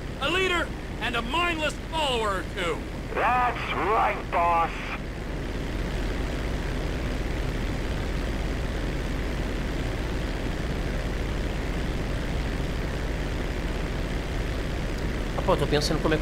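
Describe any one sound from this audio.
A propeller plane engine drones steadily.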